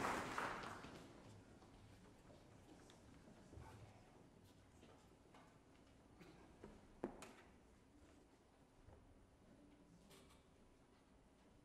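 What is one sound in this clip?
A man speaks calmly in a large hall.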